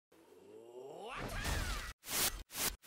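A young man shouts fiercely.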